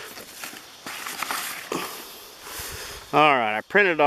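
A sheet of paper crinkles and rustles.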